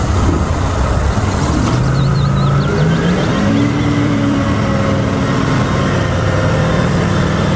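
A hydraulic lift whines and strains as a truck's dump bed tilts up.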